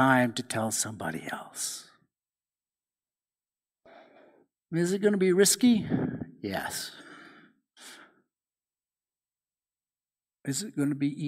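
An older man speaks calmly through a microphone, with pauses between phrases.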